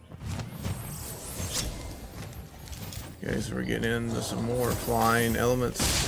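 Video game effects whoosh and chime.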